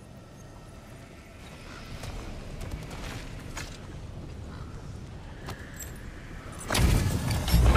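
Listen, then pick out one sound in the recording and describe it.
A magical barrier hums and shimmers.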